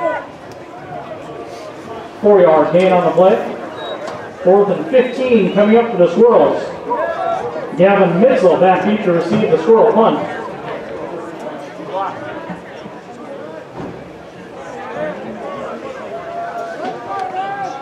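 A crowd murmurs in the stands outdoors.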